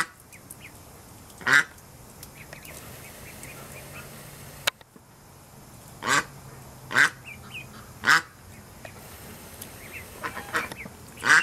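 Ducklings peep softly.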